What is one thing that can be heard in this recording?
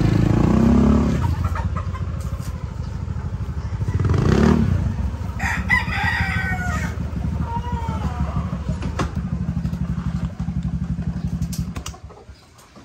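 A motorcycle engine idles with a low rumble close by.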